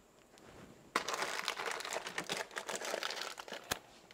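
Items rattle and knock as a person rummages through a cupboard.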